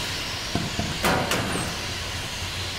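A metal locker door clanks open.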